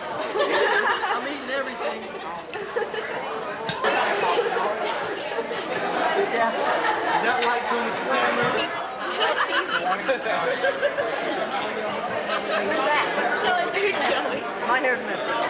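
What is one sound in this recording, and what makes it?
A crowd chatters in the background of a large room.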